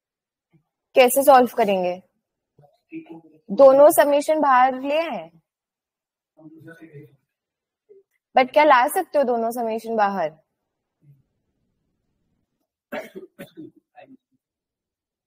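A young woman speaks calmly in short phrases through a microphone, as on an online call.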